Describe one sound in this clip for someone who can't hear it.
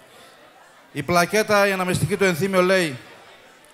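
A man speaks loudly into a microphone, heard through a loudspeaker.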